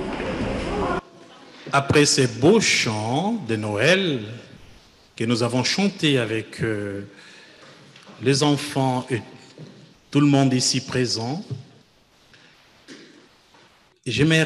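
A man speaks with expression over a microphone, with pauses.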